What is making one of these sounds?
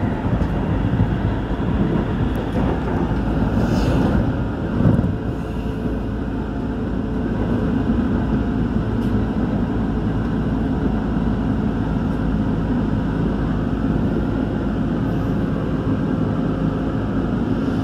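An electric commuter train rumbles along at speed, heard from inside the carriage.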